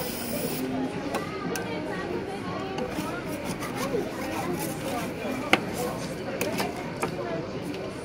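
Metal spatulas scrape and tap against a metal pan.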